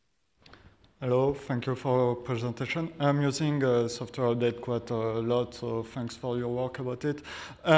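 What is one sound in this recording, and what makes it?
A man speaks steadily into a microphone in a large hall.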